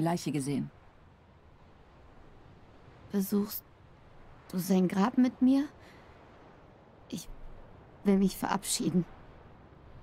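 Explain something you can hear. A young woman speaks softly and sadly, with pauses.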